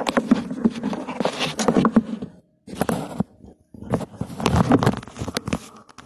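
A phone knocks and rustles as a hand picks it up.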